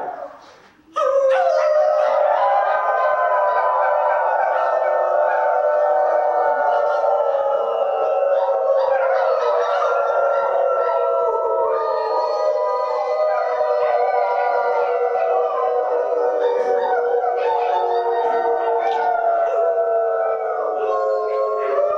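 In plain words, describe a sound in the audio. An acoustic guitar plays ringing chords through a loudspeaker.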